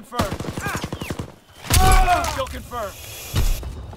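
A shovel strikes with a heavy thud.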